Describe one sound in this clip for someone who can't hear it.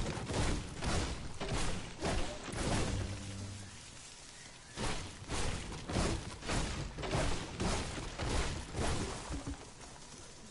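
Gunshots ring out in quick, repeated bursts.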